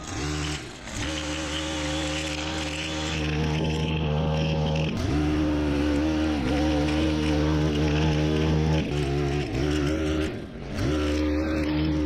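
Grass and weeds whip against a spinning trimmer line.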